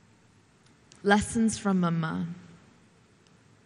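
A young woman speaks clearly into a microphone over loudspeakers.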